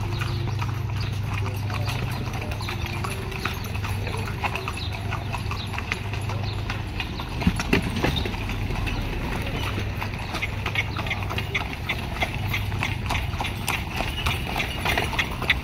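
A horse-drawn carriage rattles and creaks along.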